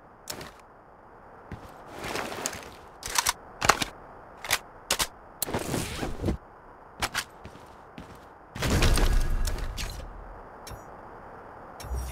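Short game interface clicks and clatters sound as gear is picked up.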